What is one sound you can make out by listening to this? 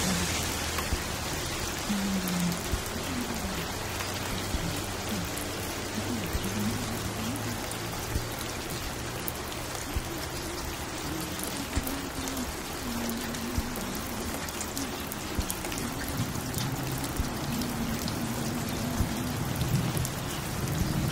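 A vinyl record crackles and pops.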